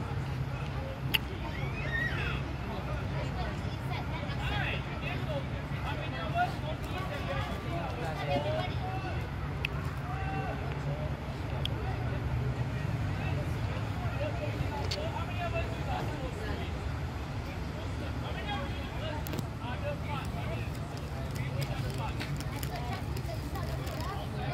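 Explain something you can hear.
Soccer balls thump as children kick them.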